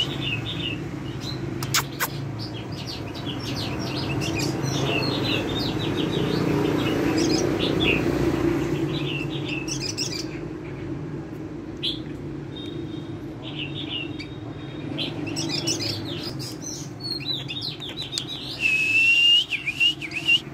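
A white-rumped shama sings in rapid chirps and whistles.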